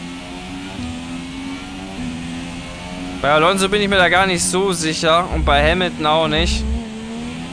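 A racing car engine whines loudly, rising and falling in pitch as it revs through the gears.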